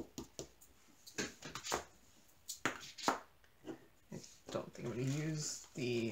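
Plastic containers click and tap against a tabletop.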